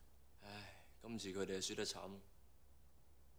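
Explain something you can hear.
A young man speaks quietly.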